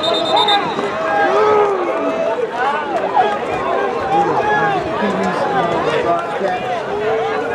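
A crowd of children and adults shouts and calls out excitedly outdoors.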